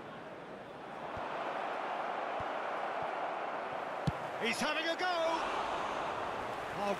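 A large stadium crowd roars louder.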